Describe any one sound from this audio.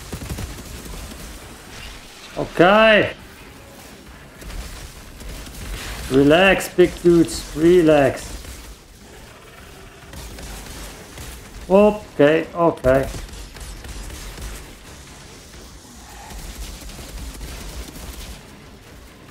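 Gunfire and explosions thud from a video game.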